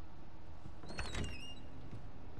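A door latch clicks and the door opens.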